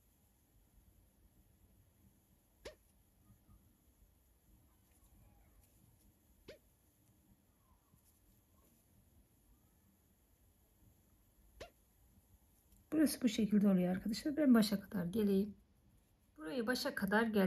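Sewing thread is pulled taut through fabric with soft tugs.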